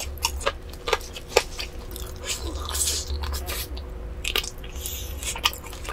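A young woman chews crispy food with wet, crunchy bites close to a microphone.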